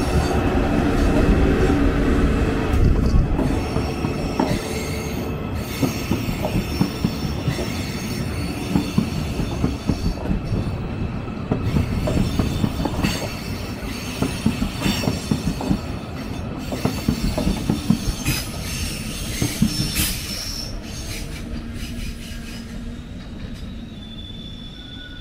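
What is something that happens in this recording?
A train rolls slowly along the tracks close by, its wheels clattering over the rail joints.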